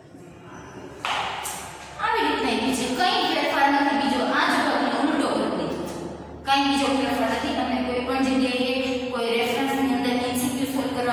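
A young woman speaks clearly and steadily into a nearby microphone, explaining.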